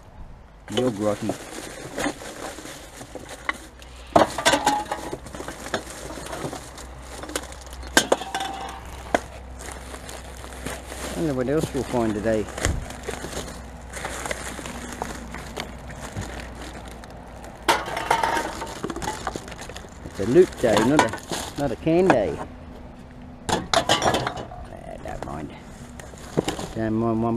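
Glass bottles and cans clink and rattle as they are handled.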